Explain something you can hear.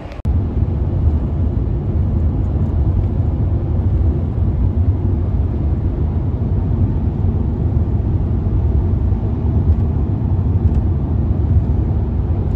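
Tyres roar steadily on a highway, heard from inside a car.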